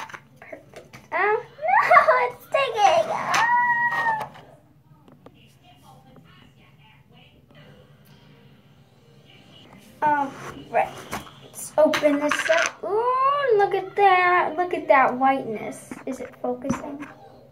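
A young girl talks with animation close by.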